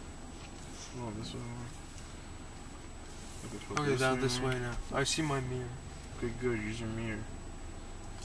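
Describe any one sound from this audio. A man talks in the car.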